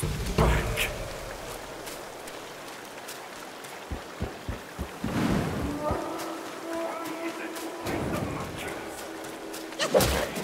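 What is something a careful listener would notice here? Footsteps crunch over leaves and dirt.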